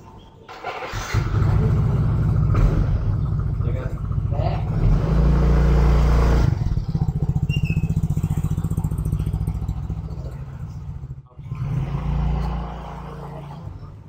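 A motorbike engine starts and runs with a steady low rumble.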